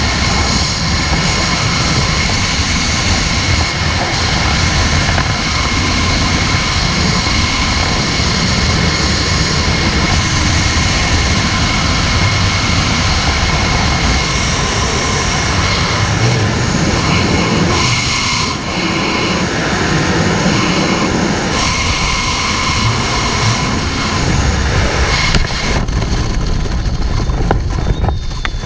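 Strong wind roars loudly and steadily against the microphone in free fall.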